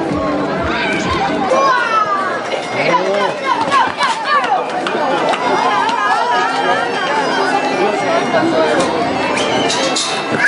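Hooves clatter on pavement as a bull runs.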